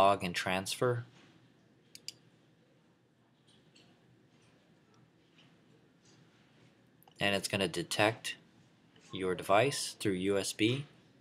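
A young man talks calmly and close to a microphone, with pauses.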